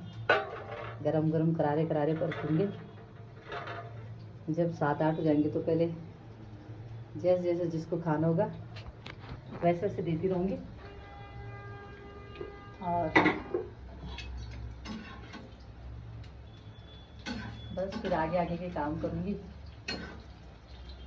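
A middle-aged woman speaks close by, calmly.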